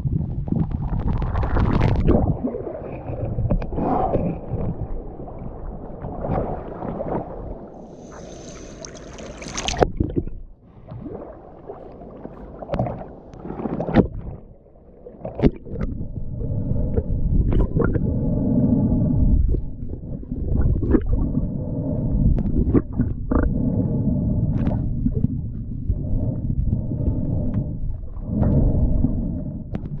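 Water splashes and sloshes close by, muffled underwater at times.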